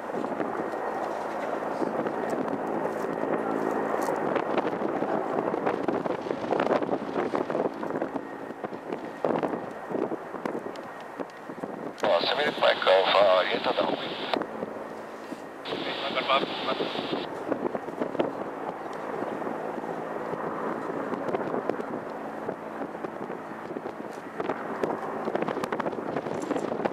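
A jet airliner roars steadily as it rolls down a runway.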